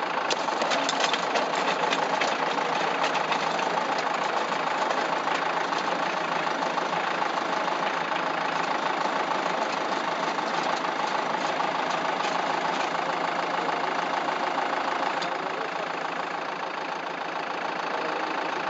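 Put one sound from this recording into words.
Clods of soil thud and patter as tiller blades churn the earth.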